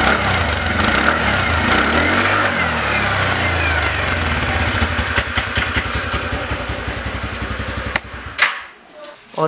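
A scooter engine idles with a steady, fast putter close by, then cuts off.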